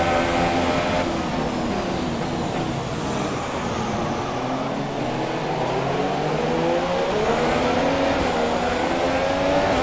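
Rain and spray hiss from tyres on a wet track.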